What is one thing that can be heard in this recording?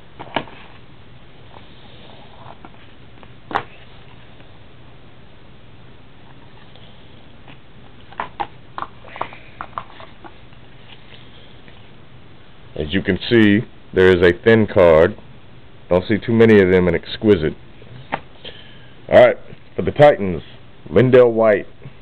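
Plastic card cases click and tap against a hard surface.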